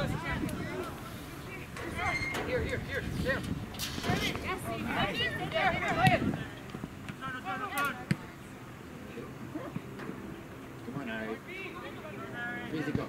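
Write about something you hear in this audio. Spectators shout and cheer from close by, outdoors.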